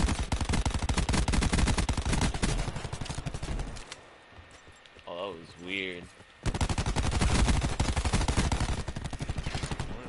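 A gun fires in rapid automatic bursts.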